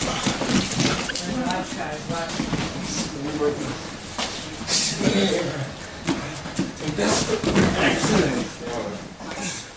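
Bare feet thud and shuffle on a padded mat.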